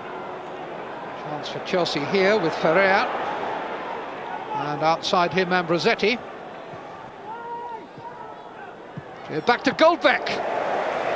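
A large stadium crowd murmurs and roars in the distance.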